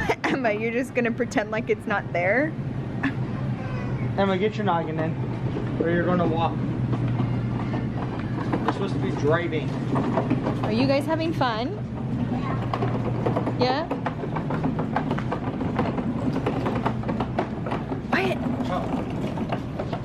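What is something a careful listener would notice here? A shopping cart's plastic wheels rumble over a smooth floor.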